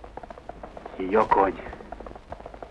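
A young man speaks briefly.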